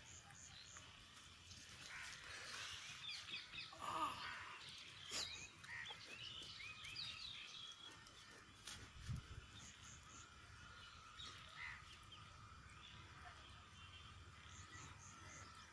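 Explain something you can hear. A knife chops and scrapes into a hard green fruit.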